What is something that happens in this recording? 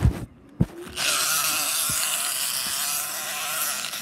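Fabric rustles loudly close by.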